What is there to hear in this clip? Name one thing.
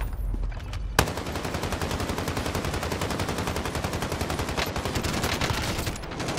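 Rapid automatic gunfire rattles close by.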